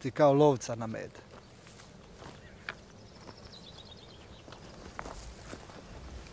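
Footsteps crunch on dry brush and stones.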